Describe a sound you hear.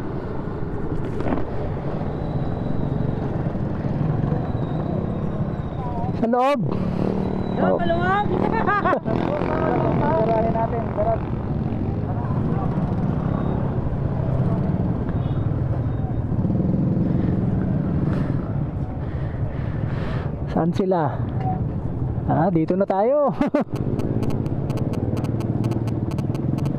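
A motorcycle engine rumbles steadily at low speed.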